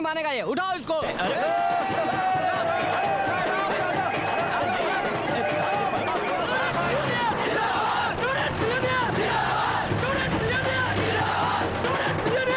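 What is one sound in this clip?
A hand drum beats in a fast rhythm.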